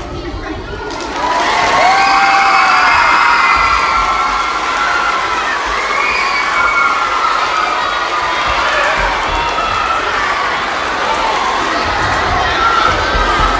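A large crowd of children cheers and screams loudly in an echoing hall.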